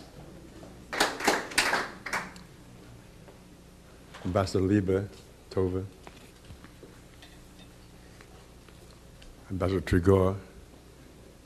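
An elderly man speaks into a microphone in short phrases.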